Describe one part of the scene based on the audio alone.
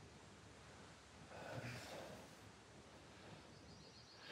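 A man speaks quietly and seriously nearby.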